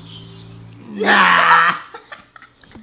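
A young man laughs loudly.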